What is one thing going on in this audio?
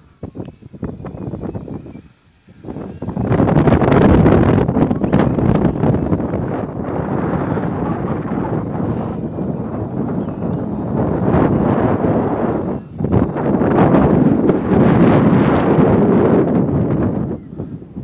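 A small propeller plane drones overhead as it flies past.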